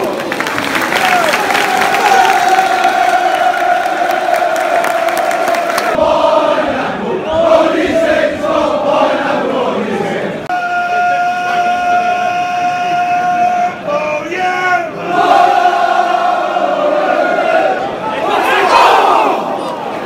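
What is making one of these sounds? A crowd of fans claps hands in time.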